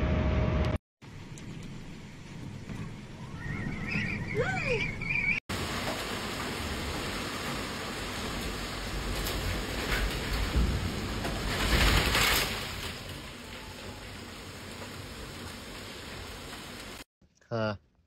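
Heavy rain pours down and lashes against a window.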